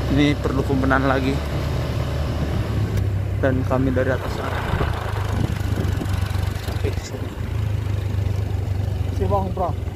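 A motorbike engine hums steadily nearby.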